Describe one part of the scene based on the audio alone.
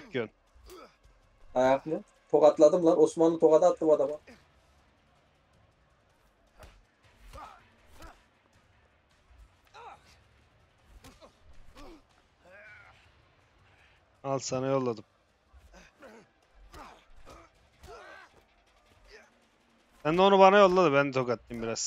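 Punches thud during a fistfight.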